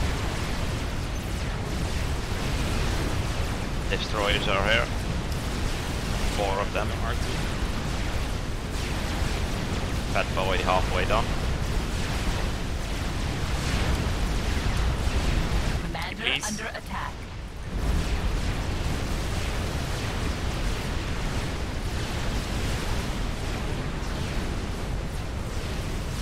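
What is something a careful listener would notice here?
Explosions and weapons fire rumble continuously in a loud battle.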